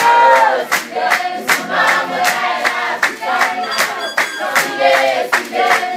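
A group of young women sings together loudly.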